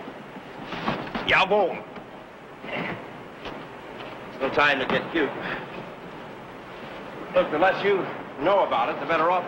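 A man speaks tensely at close range.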